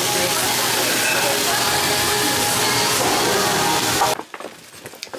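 Food sizzles loudly on a hot plate.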